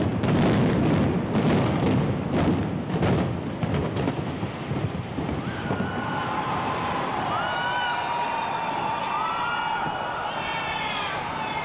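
A tall building collapses with a deep, rolling rumble that slowly fades.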